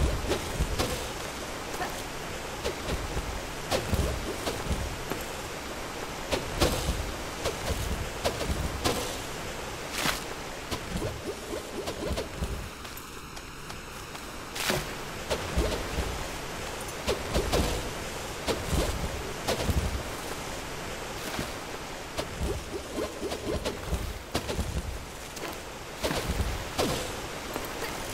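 Waterfalls rush and splash steadily.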